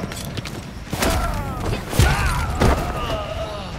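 Heavy punches land on a body with dull thuds.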